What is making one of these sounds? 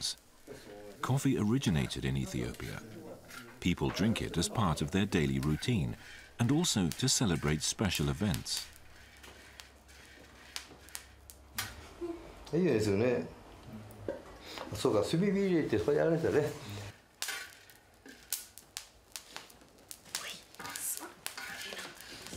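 A metal spoon scrapes and rattles beans in a pan.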